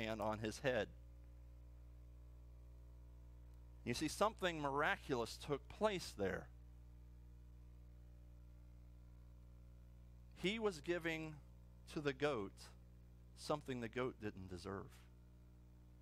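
A middle-aged man speaks calmly with pauses in a room with slight echo.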